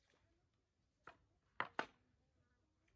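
A knife knocks on a wooden board.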